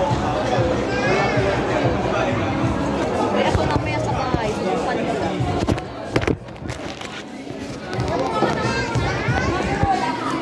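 A crowd chatters in the background of a busy, echoing room.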